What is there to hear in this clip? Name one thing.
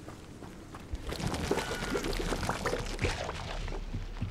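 Footsteps run quickly over stone and earth.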